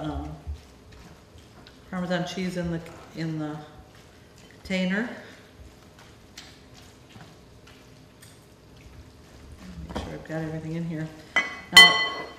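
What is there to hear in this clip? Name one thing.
A whisk clinks against a bowl.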